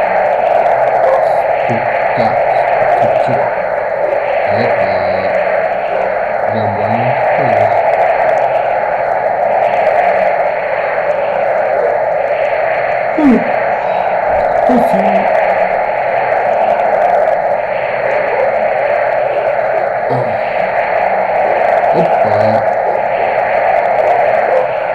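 Sandstorm wind roars steadily in a video game.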